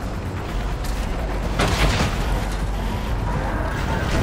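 Boots crunch quickly on dry ground.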